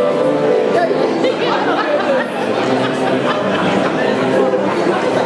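A woman sings in an operatic voice in a large hall.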